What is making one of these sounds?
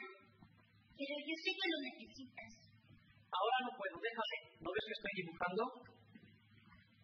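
An elderly woman speaks in a lively way nearby.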